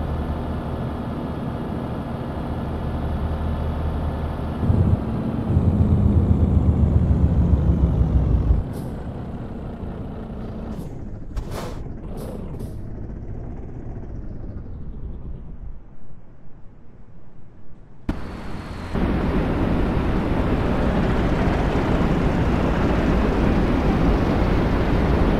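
A truck engine rumbles steadily as it drives along.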